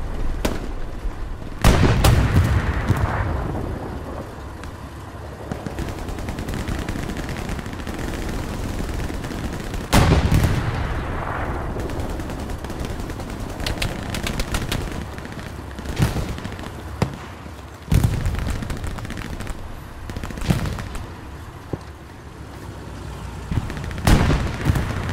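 Gunshots crack sharply in the distance.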